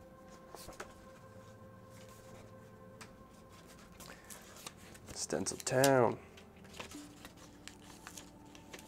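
Paper pages rustle softly as they are turned by hand.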